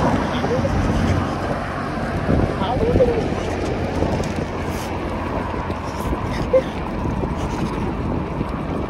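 Bicycle tyres roll on a paved road.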